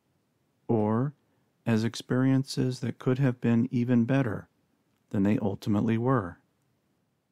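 A middle-aged man speaks calmly and slowly into a nearby microphone.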